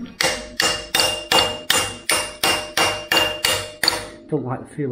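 A mallet strikes a metal gear with repeated heavy, ringing blows.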